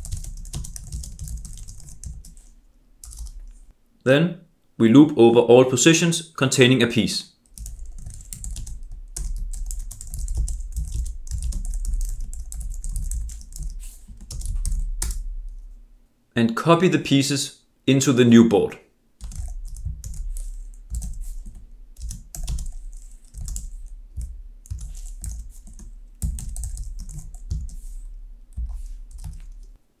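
Keys on a keyboard clatter as someone types in quick bursts.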